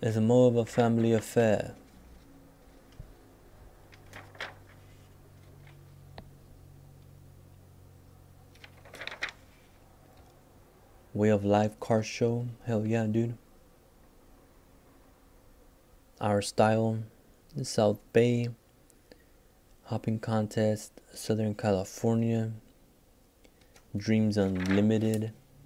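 Glossy magazine pages rustle as they are turned.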